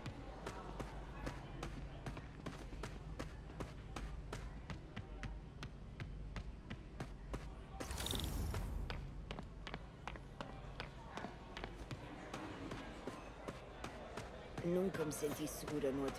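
Footsteps walk briskly on a hard floor.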